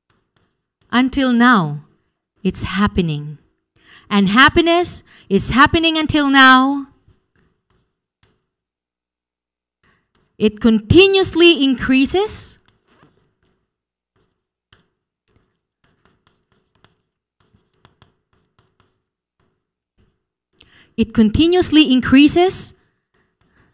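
A woman speaks calmly into a microphone, in short bursts.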